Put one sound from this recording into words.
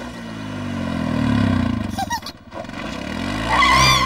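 A quad bike engine revs and rumbles.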